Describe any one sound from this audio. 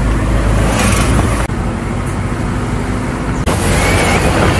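Raindrops patter on a car windscreen.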